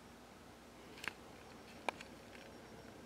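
A paper page rustles and shifts.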